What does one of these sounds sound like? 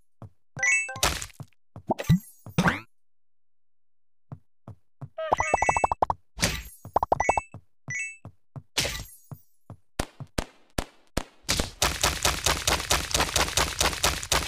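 Bricks crash and scatter.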